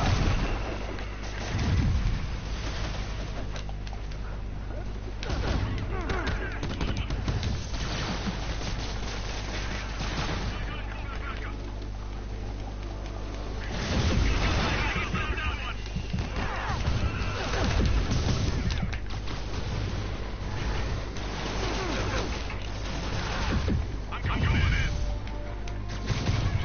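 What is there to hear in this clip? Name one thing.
Punches and kicks thump in a fight.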